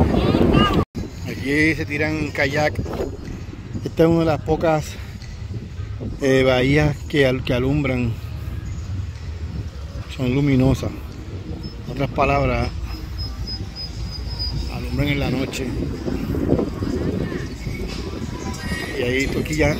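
A crowd of men and women chatter at a distance outdoors.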